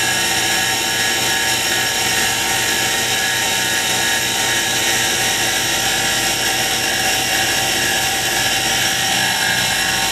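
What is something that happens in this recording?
A wood lathe hums as it runs.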